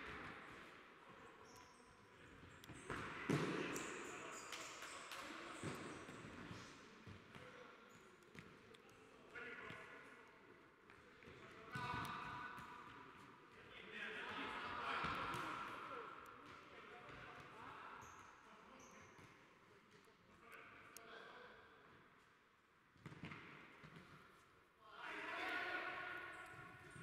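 Players' shoes squeak and patter on a hard indoor court.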